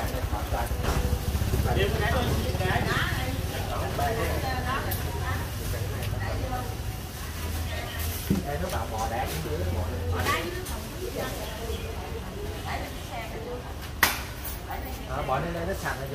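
Men and women chat nearby in a busy open-air market.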